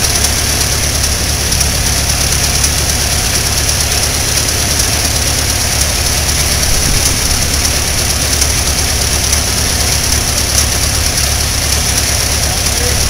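An old car engine idles with a steady low chugging.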